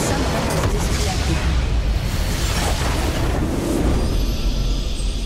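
Loud magical explosions roar and crackle.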